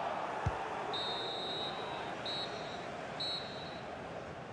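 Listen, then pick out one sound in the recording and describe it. A referee's whistle blows three short blasts.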